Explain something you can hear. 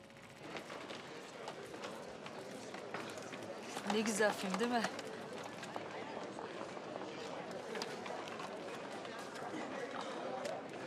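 A crowd of people murmurs and chatters noisily indoors.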